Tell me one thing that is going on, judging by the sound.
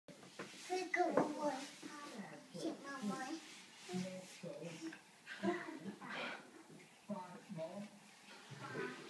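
A toddler girl babbles and chatters close by.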